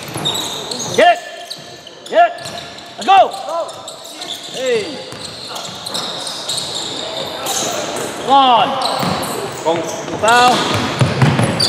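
Sneakers squeak sharply on a gym floor in an echoing hall.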